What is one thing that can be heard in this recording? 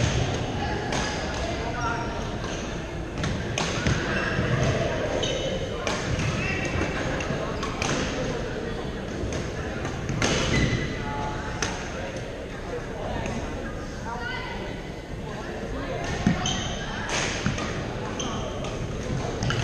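Paddles strike a plastic ball with sharp pops, again and again.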